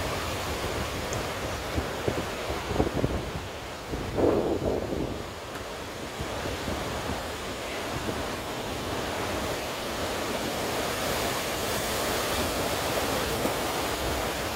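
Heavy waves crash and roar against rocks outdoors.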